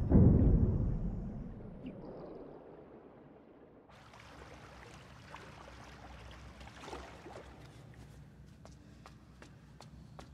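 Water churns and rumbles, muffled as if heard from underwater.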